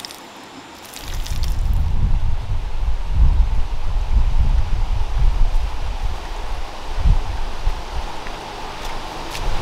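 A shallow stream gurgles over stones outdoors.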